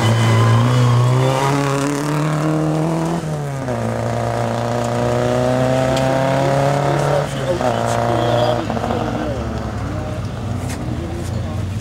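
A rally car engine roars at high revs, dropping pitch with each gear change as the car speeds away.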